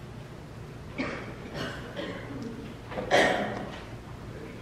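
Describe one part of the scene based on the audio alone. A man speaks calmly into a microphone in a quiet echoing room.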